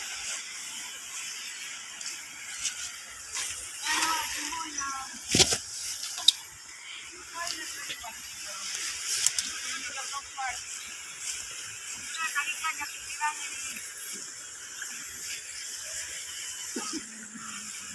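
Water splashes as people wade in a river.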